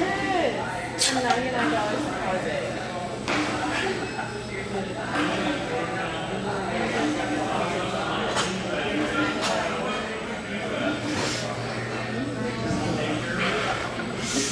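Barbell plates clink softly.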